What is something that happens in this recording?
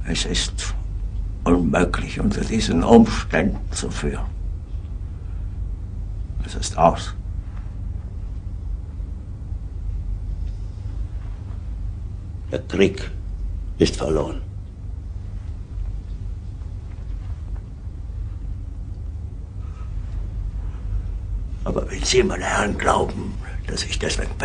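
An older man speaks in a low, grave voice, in short bursts.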